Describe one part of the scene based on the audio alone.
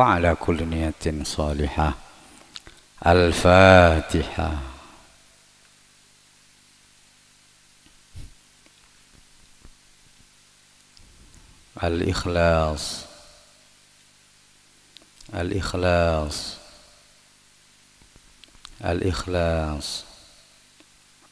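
A man chants a recitation in long, melodic phrases through a loudspeaker, echoing in a large space, with pauses between phrases.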